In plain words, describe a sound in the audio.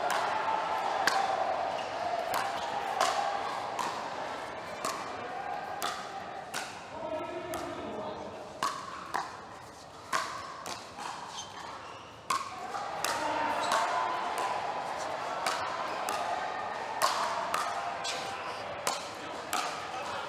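Paddles pop sharply against a plastic ball in a quick rally.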